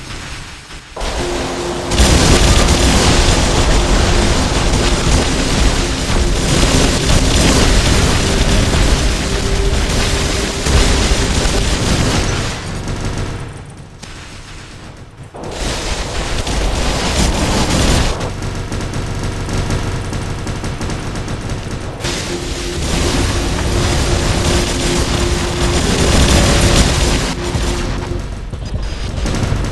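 Heavy machine guns and cannons fire in rapid bursts.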